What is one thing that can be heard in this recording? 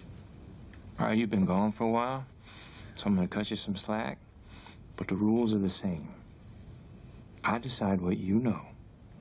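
A young man speaks quietly and intently, close by.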